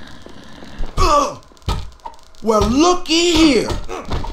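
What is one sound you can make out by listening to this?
Fists thud in a brawl.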